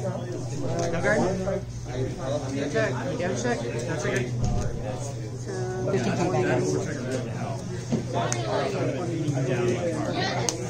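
Playing cards are shuffled and tapped onto a table.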